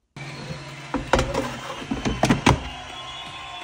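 A plastic drawer slides and clicks shut.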